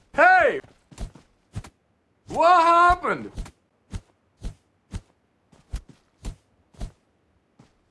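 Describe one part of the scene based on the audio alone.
Punches thud in quick, sharp blows.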